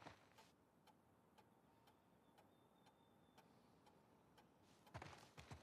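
A wall clock ticks steadily.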